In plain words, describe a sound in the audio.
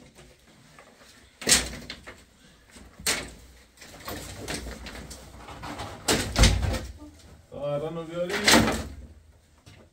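Dry branches clatter and knock as they are piled.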